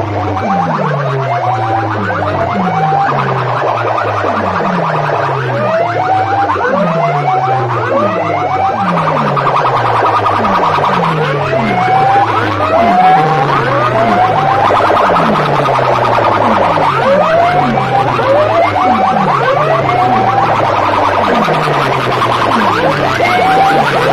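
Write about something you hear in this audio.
Loud music with a steady repeating beat blares from horn loudspeakers close by.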